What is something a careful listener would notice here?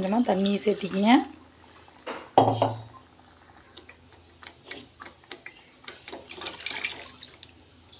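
Water pours into a pan.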